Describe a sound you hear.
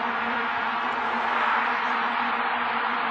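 A stadium crowd's cheering swells louder.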